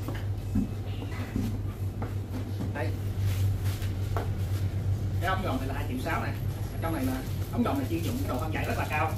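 Plastic packaging rustles in a man's hands.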